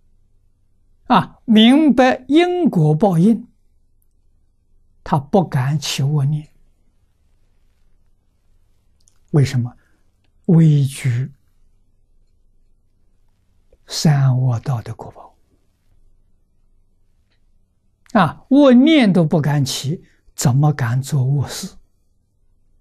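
An elderly man speaks calmly in short phrases through a close microphone.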